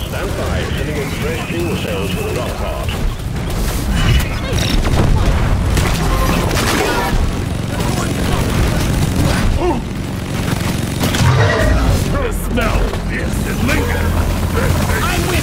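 Alien creatures screech and splatter as they are hit.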